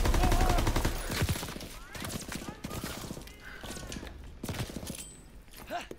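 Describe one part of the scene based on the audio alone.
A gun's magazine clicks as it is reloaded.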